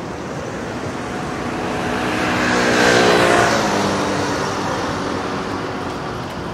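A motor scooter passes close by, growing loud and then fading.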